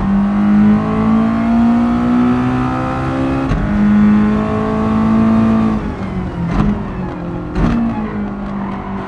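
A racing car engine revs high and climbs through the gears.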